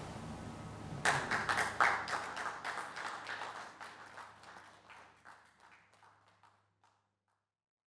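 An audience applauds, then the clapping slowly fades.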